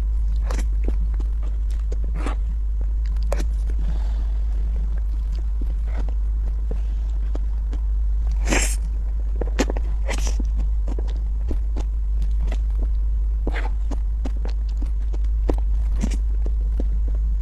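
A woman chews soft cake with wet, smacking mouth sounds close to a microphone.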